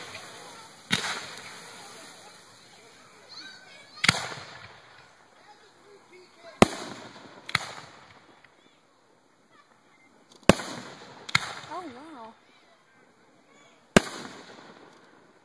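Fireworks burst with loud, sharp bangs that echo away.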